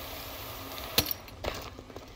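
A heavy thud lands on stone.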